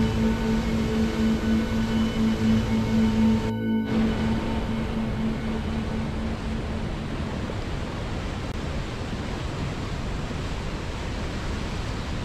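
A mountain river rushes over rocks.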